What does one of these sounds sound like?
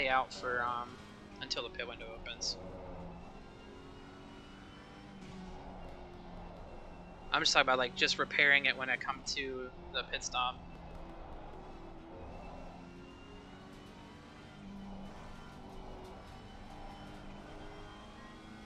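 A racing car engine drones steadily and shifts in pitch.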